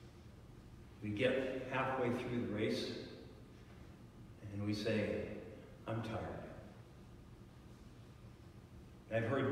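An elderly man speaks calmly from a distance in a large echoing hall, heard through a microphone.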